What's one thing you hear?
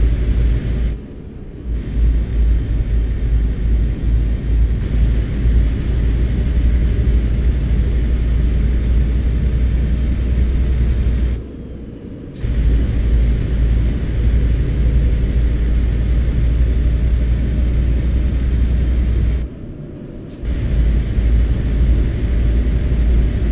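A heavy truck engine drones steadily, dropping away briefly a few times.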